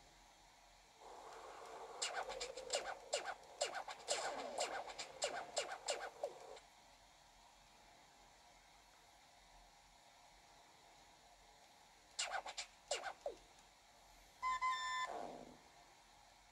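Game sound effects play from a handheld console's small speaker.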